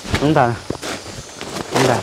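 A plastic tarp rustles and crinkles.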